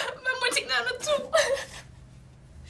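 A young woman sobs.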